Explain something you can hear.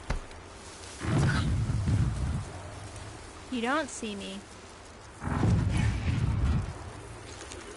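A large mechanical beast growls with deep rumbles.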